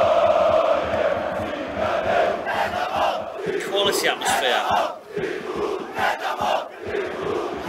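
A large crowd chants and sings loudly.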